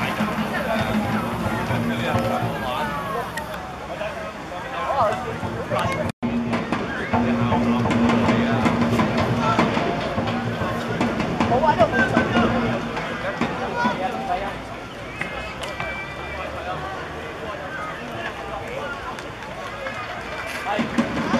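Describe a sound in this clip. A crowd of football supporters shouts and chatters in an open-air stand.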